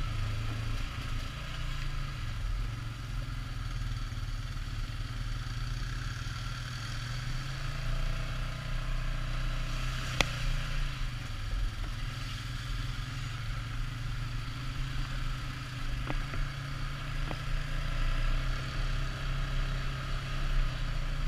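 A quad bike engine drones steadily up close.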